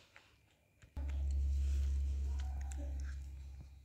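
Paper rustles and crinkles right by the microphone.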